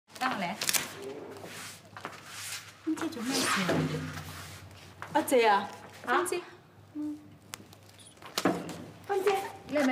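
A woman sobs and cries close by.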